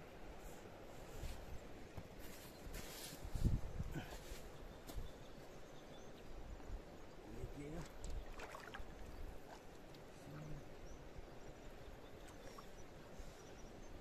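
A river flows and laps gently at the shore.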